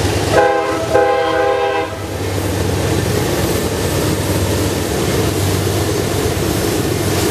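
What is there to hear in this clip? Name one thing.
Diesel locomotives rumble loudly as a train passes close by.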